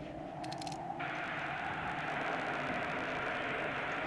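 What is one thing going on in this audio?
Radio static hisses as a dial turns.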